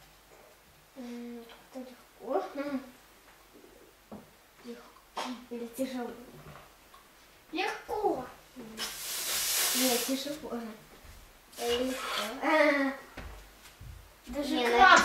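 A child talks nearby.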